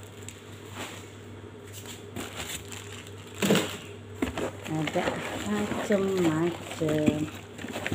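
Cardboard boxes rustle and thump as they are handled.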